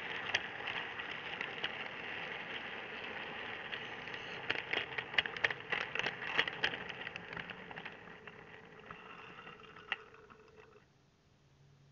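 A small model train motor whirs steadily and then stops.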